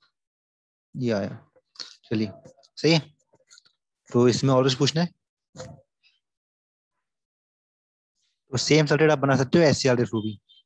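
A young man speaks calmly through an online call.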